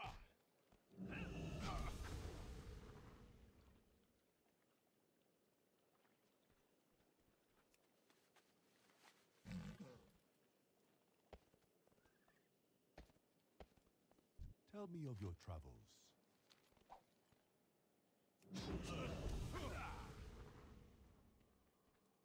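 A video game spell effect bursts with a loud whoosh.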